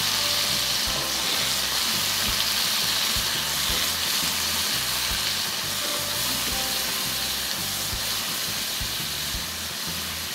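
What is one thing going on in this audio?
Green beans sizzle in a hot pan.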